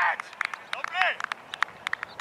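A man cheers loudly outdoors.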